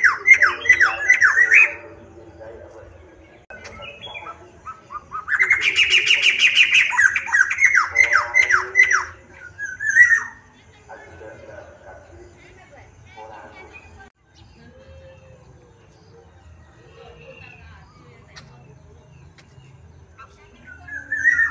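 A caged bird sings loud, sharp, rapid chirping phrases close by.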